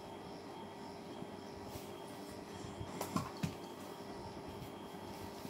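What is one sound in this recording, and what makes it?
A small child crawls on a bed, with soft rustles and thumps.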